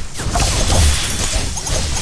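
A magic spell crackles and sparkles.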